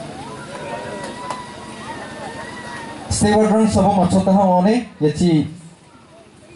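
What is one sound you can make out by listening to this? A man speaks into a microphone, heard through a loudspeaker.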